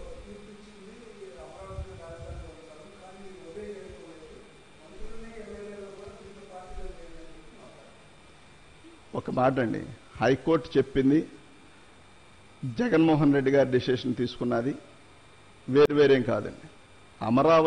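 A man speaks with animation into a microphone, close by, with pauses.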